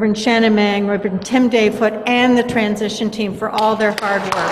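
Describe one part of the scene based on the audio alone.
A middle-aged woman speaks through a microphone.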